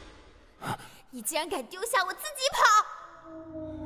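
A young woman shouts angrily, close by.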